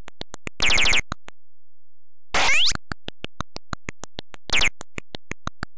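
Buzzy electronic game jingles burst out briefly.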